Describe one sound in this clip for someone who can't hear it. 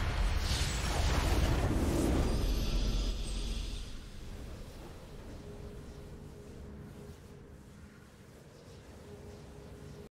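A triumphant fanfare swells.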